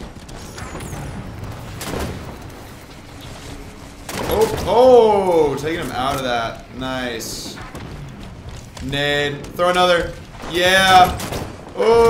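Gunfire crackles from a video game.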